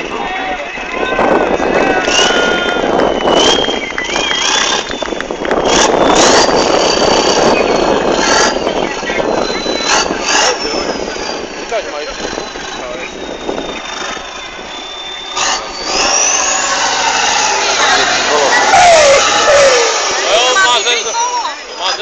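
Truck wheels spin and churn through loose sand.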